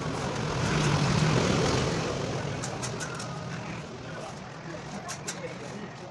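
A trowel scrapes wet cement.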